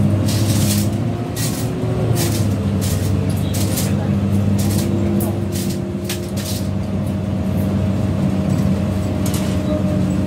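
A bus engine hums steadily from inside the cab.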